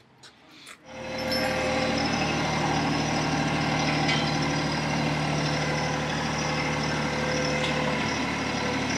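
A compact diesel tractor engine idles.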